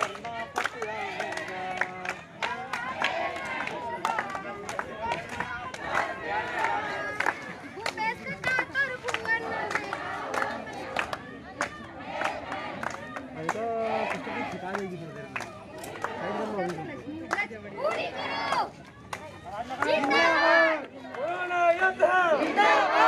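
A crowd of men chant and talk outdoors.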